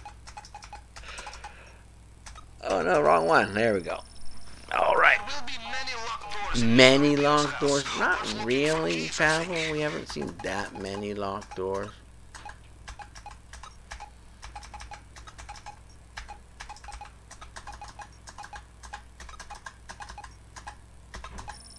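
Soft electronic clicks tick from a hacking interface.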